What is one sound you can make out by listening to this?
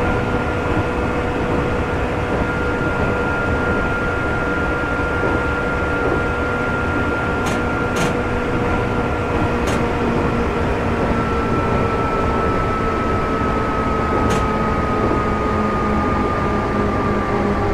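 An electric train motor hums steadily with a slowly falling whine.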